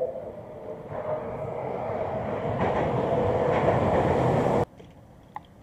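A vehicle drives past close by with a rising roar.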